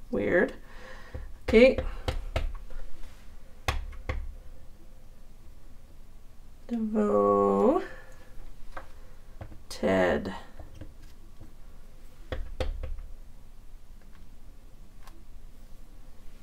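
Wooden rubber stamps knock softly against a table and paper.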